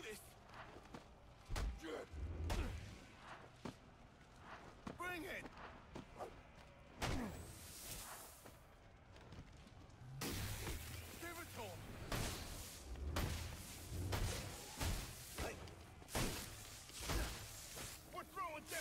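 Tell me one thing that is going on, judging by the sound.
Punches and kicks land with heavy thuds in a brawl.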